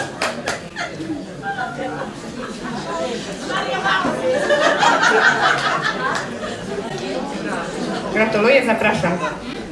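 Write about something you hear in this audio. A woman speaks into a microphone, heard over loudspeakers in a hall.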